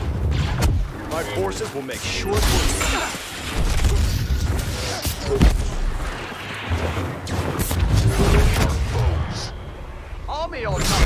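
Blaster shots zap repeatedly.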